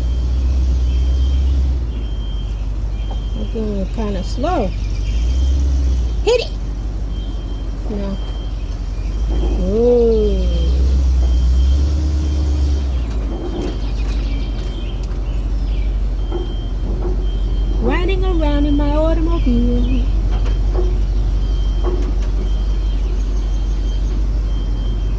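A vehicle engine rumbles low and steadily while driving slowly.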